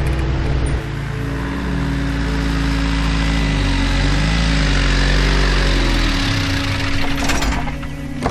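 A van engine rumbles as the van approaches and pulls up.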